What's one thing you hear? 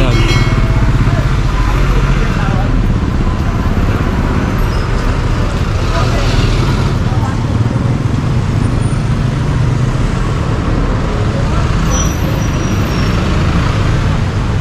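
Motorbikes and a truck drive past on a busy street.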